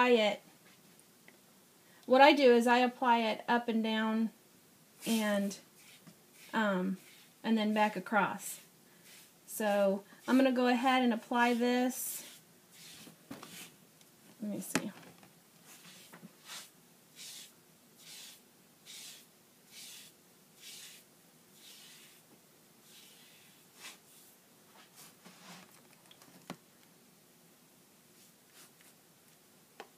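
A foam brush stirs and scrapes in liquid in a plastic tub.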